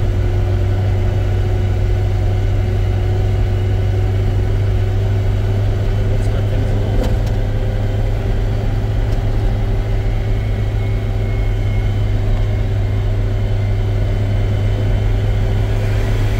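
Road noise rumbles low inside a moving car.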